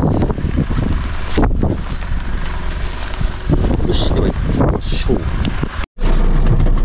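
Wind blows against a microphone outdoors.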